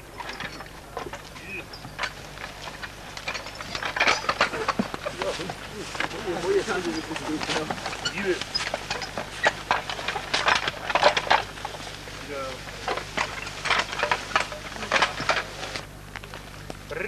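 Horses' hooves thud and shuffle on the forest floor.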